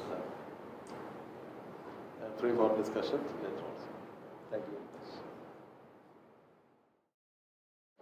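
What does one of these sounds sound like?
An elderly man speaks calmly to a room.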